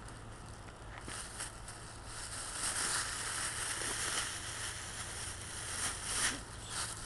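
Footsteps scuff on a path.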